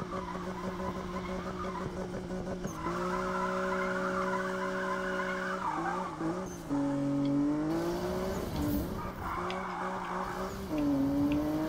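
Tyres screech loudly on the road while the car spins and drifts.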